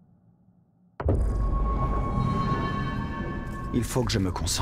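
A shimmering magical tone swells and rings.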